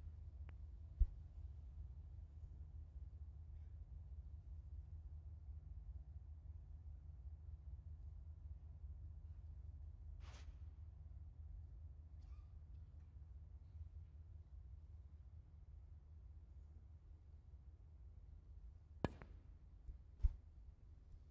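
Snooker balls knock together with a hard clack.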